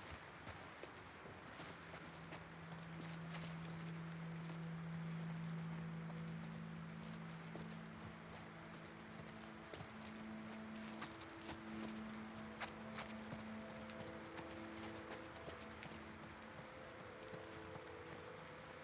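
Footsteps tap slowly on a hard tiled floor.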